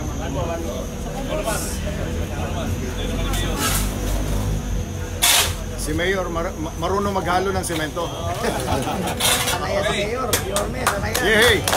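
Several men talk nearby.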